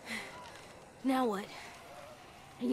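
A young boy asks a question.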